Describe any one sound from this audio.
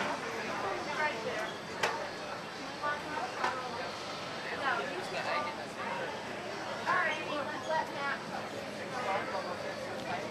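Several people chatter nearby in a busy, echoing indoor space.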